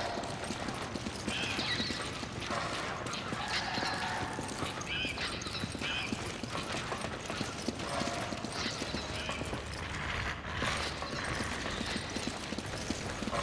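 Footsteps run on a hard floor.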